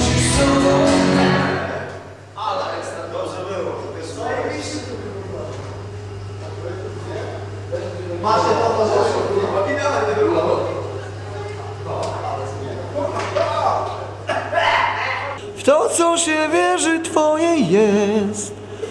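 A drummer plays a drum kit.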